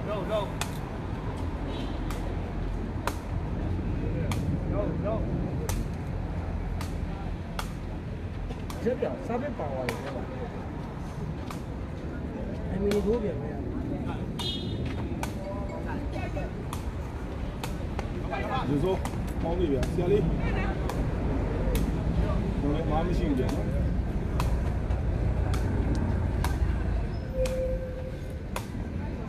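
A crowd of people chatters and cheers outdoors.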